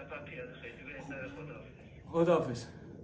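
A voice plays quietly through a phone speaker.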